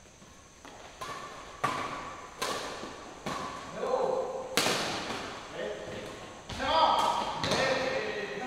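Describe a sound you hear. Badminton rackets strike a shuttlecock back and forth in an echoing hall.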